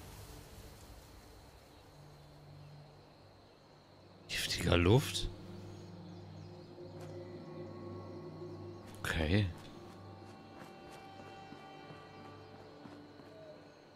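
Footsteps rustle through dry grass and then tread on stone paving.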